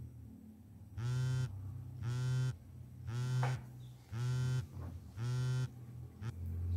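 A phone rings repeatedly nearby.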